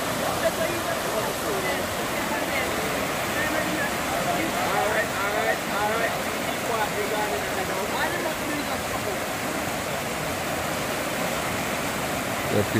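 Water splashes around a person wading through the current.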